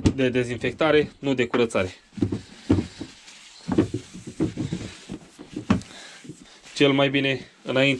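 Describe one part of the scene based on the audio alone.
Hands bump and rub against a hollow plastic lid.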